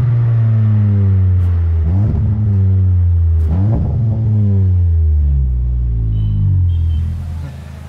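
A car engine roars loudly through its exhaust, its pitch sliding down in steps.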